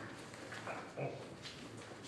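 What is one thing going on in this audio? A paper folder rustles.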